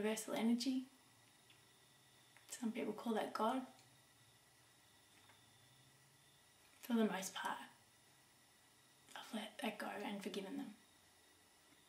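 A middle-aged woman speaks calmly and haltingly, close by, with pauses between phrases.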